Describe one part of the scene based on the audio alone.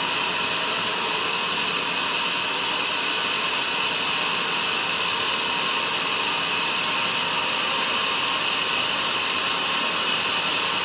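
A band saw whines steadily as it cuts through a thick timber log.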